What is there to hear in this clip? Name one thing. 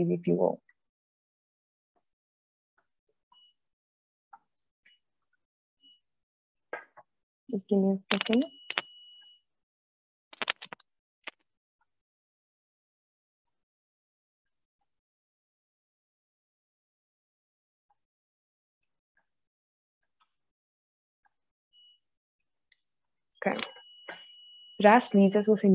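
A young woman speaks calmly through a computer microphone on an online call, in short bursts with long pauses.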